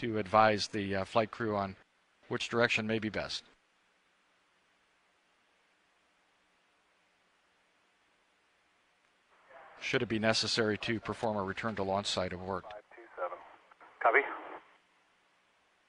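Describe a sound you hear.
A man speaks nearby in a calm voice.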